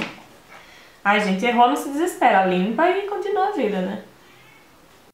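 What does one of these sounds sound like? A young woman talks calmly and clearly, close to the microphone.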